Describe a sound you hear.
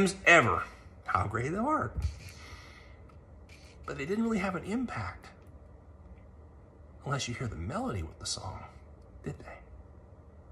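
A middle-aged man speaks close up, calmly and in short bursts with pauses.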